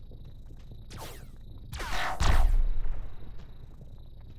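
An energy blast bursts with a loud whoosh and fades.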